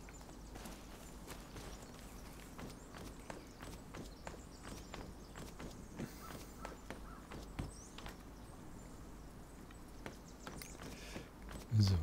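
Footsteps crunch steadily over dirt and straw.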